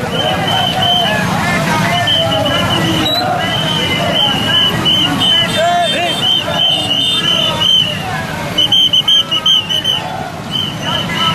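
Many motorcycle engines rumble and idle close by.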